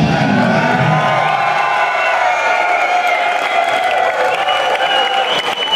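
Loud live music plays through speakers in a large crowded hall.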